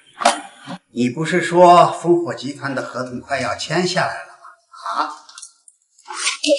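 An elderly man speaks sharply and with agitation, close by.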